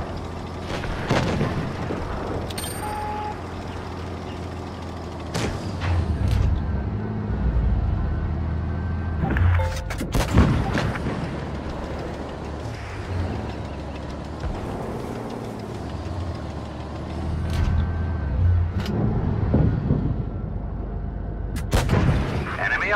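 A tank cannon fires with sharp booms now and then.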